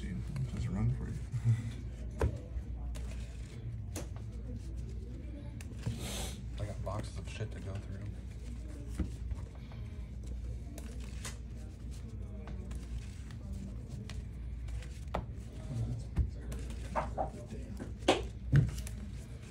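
Cards tap and slap onto a play mat.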